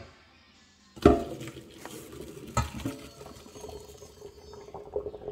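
Hot water pours out of a pot into a metal sink.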